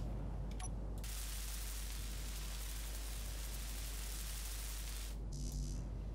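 A welding tool hisses steadily.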